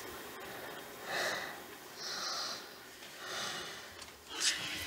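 A man breathes heavily in his sleep.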